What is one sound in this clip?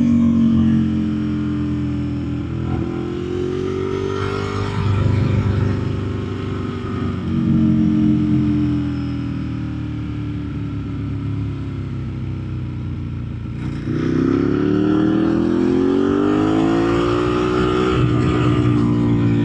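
Wind rushes past a moving motorcycle rider.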